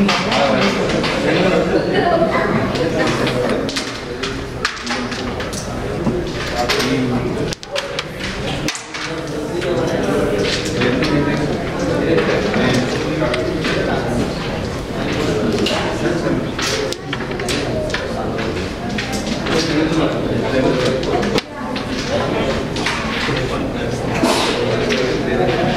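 Men talk nearby in low voices.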